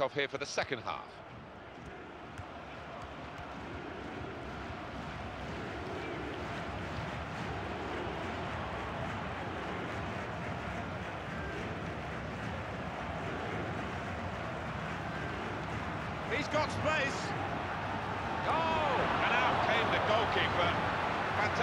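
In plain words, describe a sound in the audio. A large crowd murmurs and roars steadily in a stadium.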